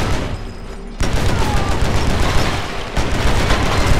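A pistol fires rapid shots.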